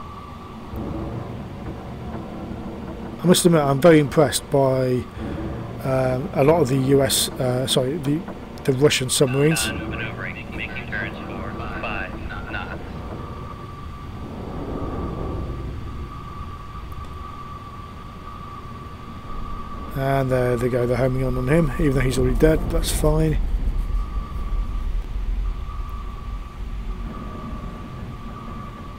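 A submarine's engine hums low and steady.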